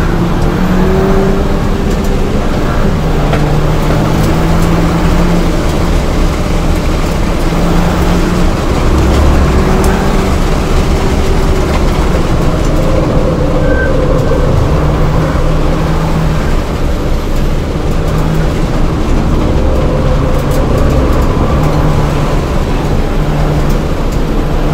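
A four-cylinder turbo hatchback's engine roars from inside the cabin under hard acceleration, shifting through the gears.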